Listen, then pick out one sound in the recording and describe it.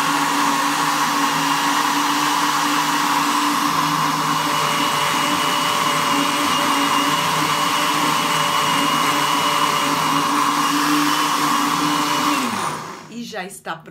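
A blender whirs loudly and steadily, then winds down.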